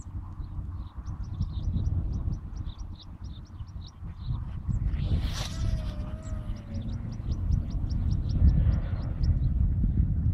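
A fishing reel clicks steadily as line is wound in.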